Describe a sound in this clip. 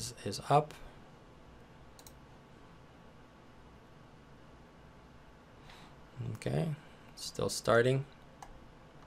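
A young man speaks calmly and close to a microphone, in short phrases with pauses.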